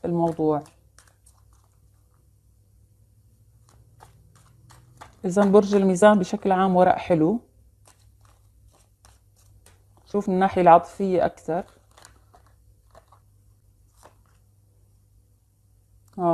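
A woman speaks calmly and close up, in short phrases with pauses.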